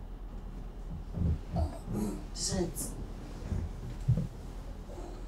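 A man murmurs and groans softly.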